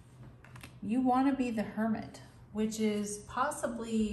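A card slides onto a wooden table.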